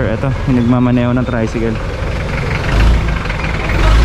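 A truck engine rumbles close by.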